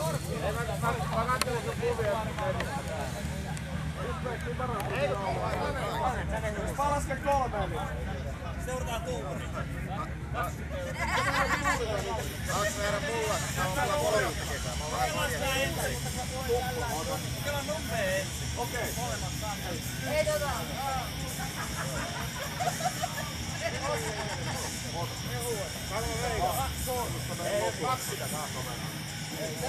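A group of men talk and chat nearby, outdoors.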